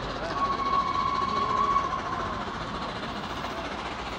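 A steam locomotive chugs faintly in the distance as it approaches.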